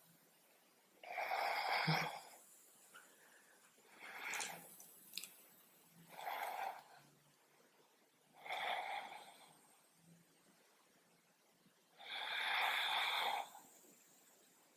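A woman breathes in and out deeply and slowly.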